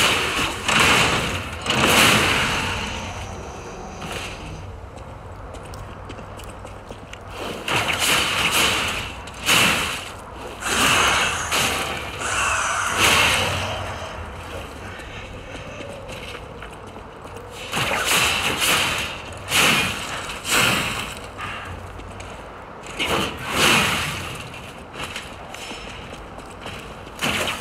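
Heavy weapon blows clash and thud in a fight.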